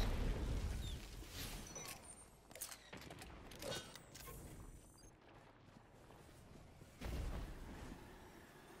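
An explosion booms and crackles.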